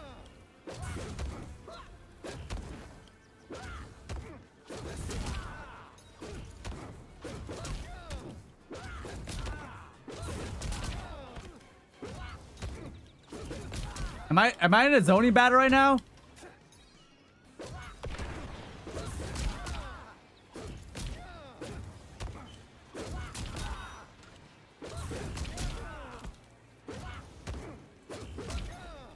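Fire blasts whoosh and burst in a fighting game.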